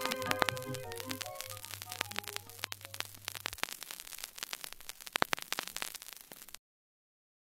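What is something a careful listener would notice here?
A vinyl record crackles and pops.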